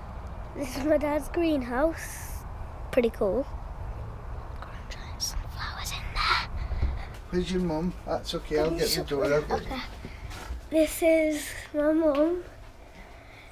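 A young boy talks excitedly close to the microphone.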